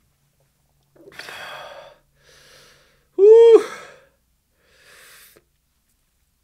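A man groans and exclaims loudly into a close microphone.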